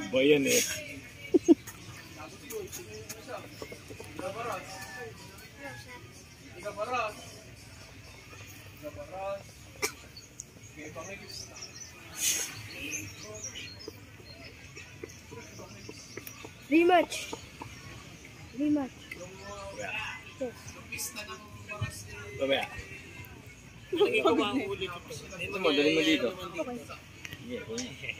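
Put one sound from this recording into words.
Young people talk and call out casually nearby, outdoors.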